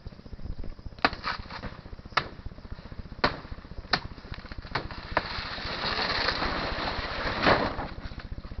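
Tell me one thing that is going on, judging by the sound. Leaves and branches rustle and snap close by.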